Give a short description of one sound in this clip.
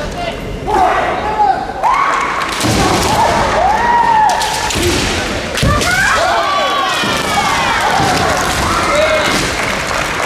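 Young women let out high, drawn-out kendo shouts in a large echoing hall.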